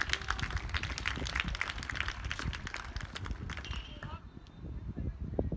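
A tennis ball is struck with a faint pop in the distance.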